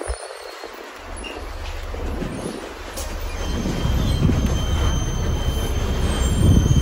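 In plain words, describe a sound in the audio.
A bus engine rumbles low as it slows in traffic.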